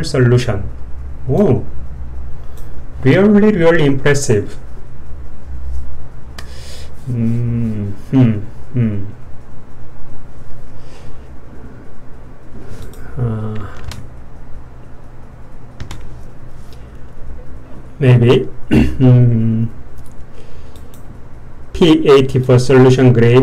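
A man talks calmly into a microphone, close by, with pauses.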